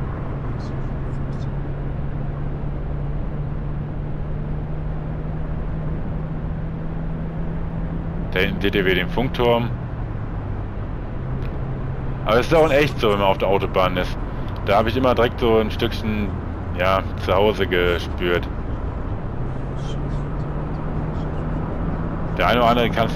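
A bus engine drones steadily at highway speed.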